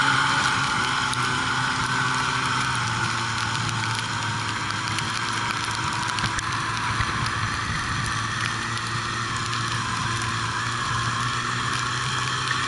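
Snowmobile tracks rumble and crunch over packed snow.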